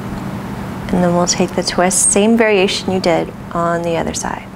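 A woman speaks calmly and softly close to a microphone.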